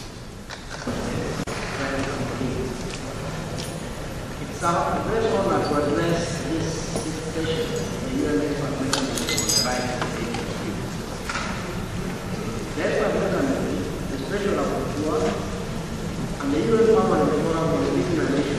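A second man speaks steadily into a microphone in a large room.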